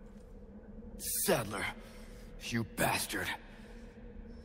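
A young man mutters angrily, close by.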